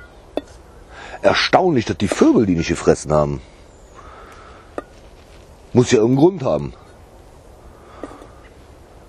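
Small berries drop with a light tap into a metal bowl.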